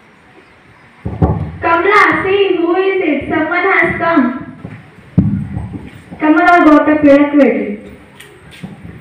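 A teenage girl speaks through a microphone and loudspeaker, acting out lines.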